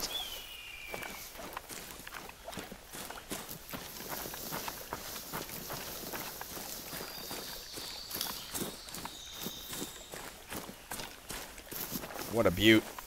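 Footsteps rustle through tall dry grass.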